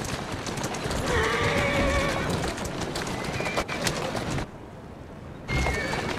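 A horse-drawn cart rattles quickly over cobblestones.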